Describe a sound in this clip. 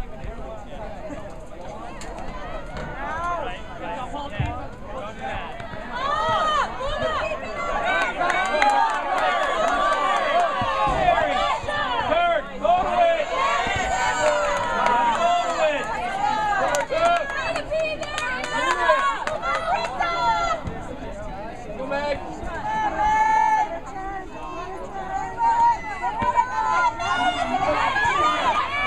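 A crowd of adult spectators shouts and cheers close by, outdoors.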